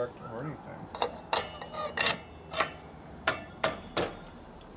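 Metal parts click and clink sharply as they are handled.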